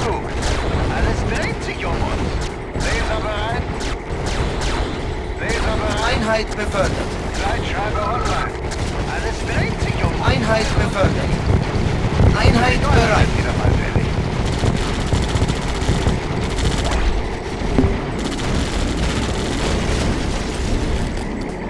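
Weapons fire and zap in rapid bursts.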